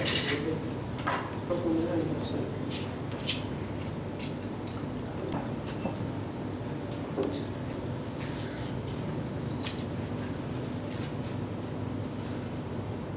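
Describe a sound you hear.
A stone scrapes and grinds against a grinding stone.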